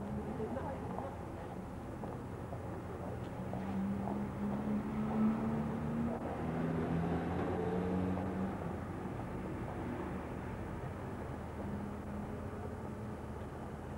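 Heavy vehicle engines rumble slowly along a street.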